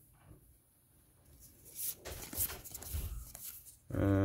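Playing cards rustle and slide against each other.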